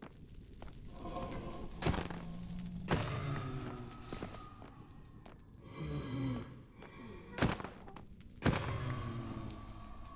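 Fiery creatures crackle and hiss.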